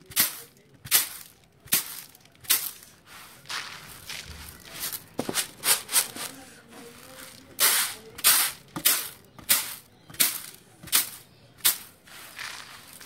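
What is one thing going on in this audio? Grain rustles and rattles as it is tossed on a winnowing tray in rhythmic shakes.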